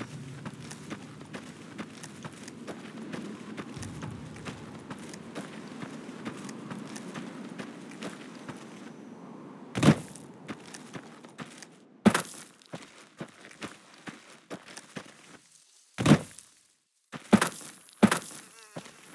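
Footsteps crunch steadily on dry gravel.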